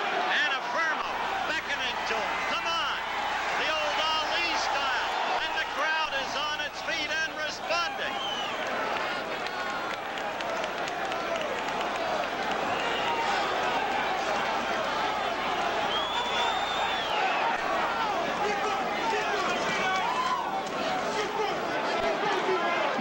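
A large crowd cheers and shouts loudly throughout.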